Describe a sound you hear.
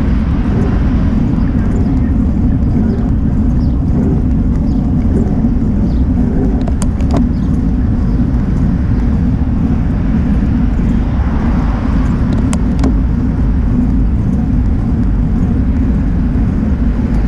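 Wind roars steadily across a microphone.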